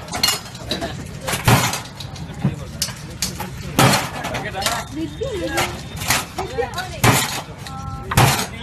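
Metal cups clank and rattle on a metal counter.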